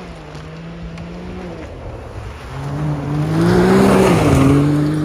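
An off-road buggy engine revs and grows louder as it drives closer.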